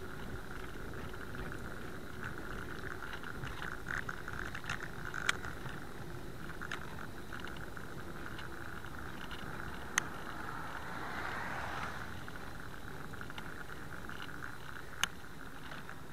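Wind buffets the microphone steadily.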